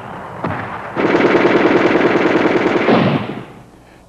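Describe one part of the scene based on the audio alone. Gunfire rattles in rapid bursts outdoors.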